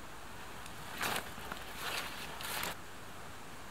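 A tarp rustles and crinkles as it is tugged.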